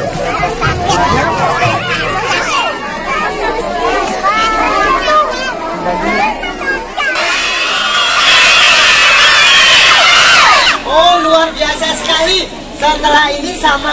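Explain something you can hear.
Many young children chatter and shout excitedly close by.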